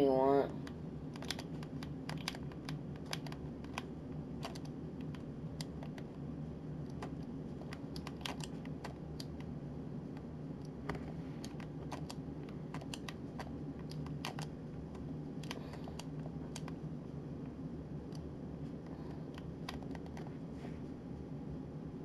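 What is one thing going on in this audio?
Building pieces snap into place with quick, sharp clicks.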